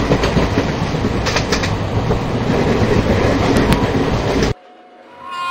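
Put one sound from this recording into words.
A train rumbles and rattles steadily along the tracks, heard from inside a carriage.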